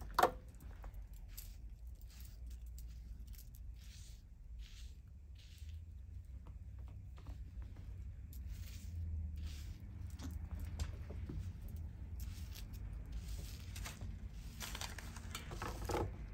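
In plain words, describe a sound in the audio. A comb brushes through hair in short strokes.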